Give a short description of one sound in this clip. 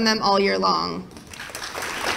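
A woman speaks into a microphone, heard through a loudspeaker in a large hall.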